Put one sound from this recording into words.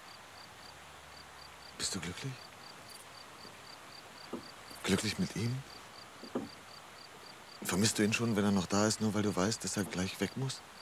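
A woman speaks quietly and close by.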